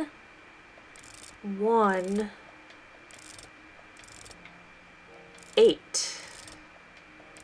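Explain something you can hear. Dials of a combination lock click as they turn.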